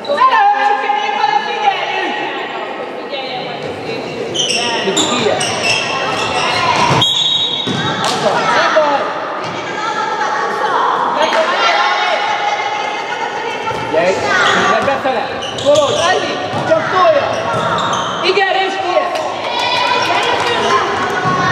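Young girls shout and call out to each other in an echoing hall.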